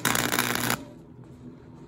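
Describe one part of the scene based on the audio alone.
An electric welding arc crackles and sizzles loudly.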